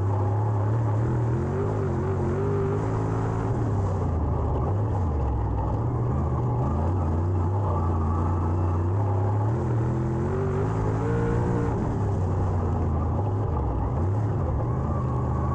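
A race car engine roars loudly up close, rising and falling as it revs through the turns.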